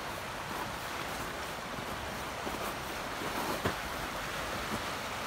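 A shallow river rushes and gurgles steadily over stones nearby.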